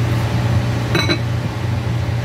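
A glass lid clinks down onto a glass pot.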